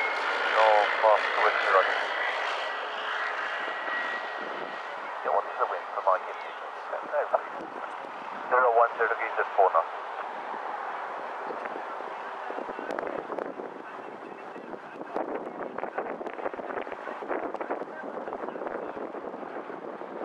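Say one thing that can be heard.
A small propeller plane's engine hums steadily as the plane glides in to land.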